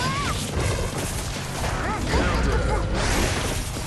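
Heavy blows and slashing hits land in quick succession.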